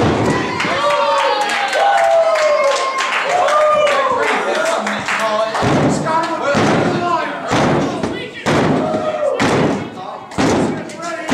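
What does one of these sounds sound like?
A small indoor crowd shouts and jeers.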